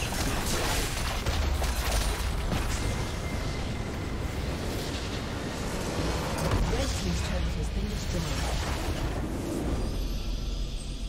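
Game battle effects crash and clash loudly.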